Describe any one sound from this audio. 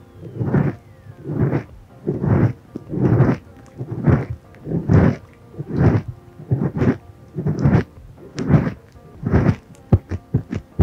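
Fluffy foam rubs slowly against a microphone in close, soft swishing strokes.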